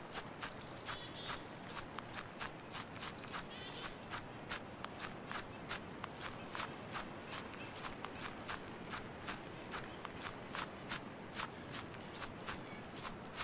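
Footsteps crunch steadily on a forest path.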